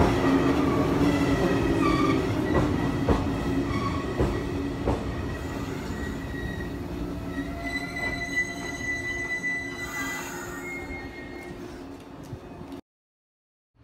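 A train's motor whines steadily.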